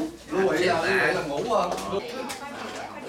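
Men laugh nearby.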